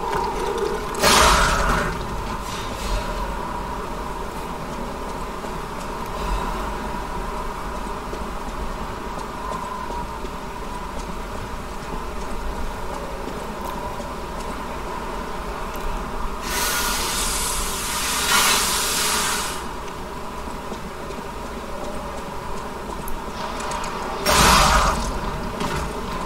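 A blade slashes and strikes in short, sharp bursts.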